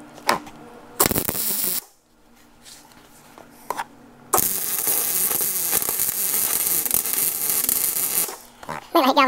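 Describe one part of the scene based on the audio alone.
An electric welder crackles and hisses in a short burst and then a longer run.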